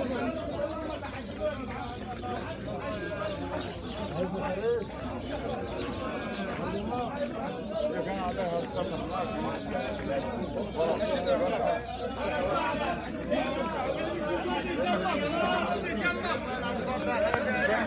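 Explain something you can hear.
A large crowd of men shouts and clamours loudly outdoors.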